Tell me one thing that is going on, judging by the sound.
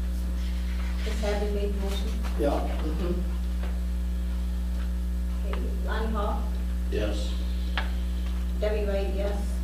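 A man speaks calmly at a distance in a room.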